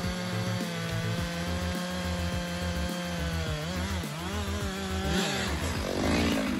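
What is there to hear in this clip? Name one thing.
A chainsaw engine idles and revs up close.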